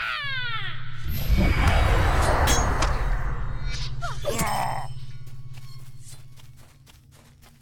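A magic spell bursts with a deep rumbling roar that slowly fades.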